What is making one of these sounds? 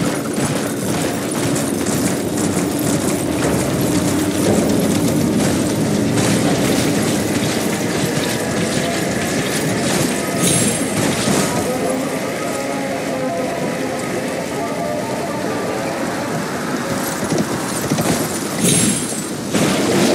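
A horse's hooves clop steadily over hard ground.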